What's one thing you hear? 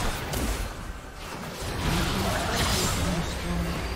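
A game tower crumbles with a heavy crash.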